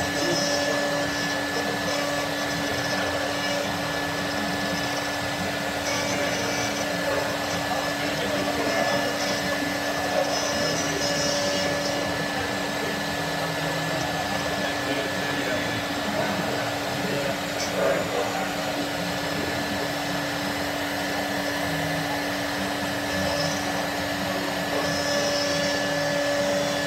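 A machine router whines steadily as it carves into plastic.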